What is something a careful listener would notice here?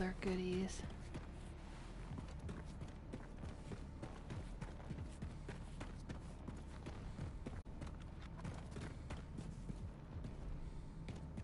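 Heavy footsteps thud steadily on hard ground.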